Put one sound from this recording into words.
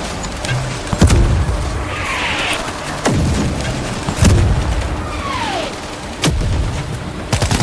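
A mortar fires with loud booming blasts.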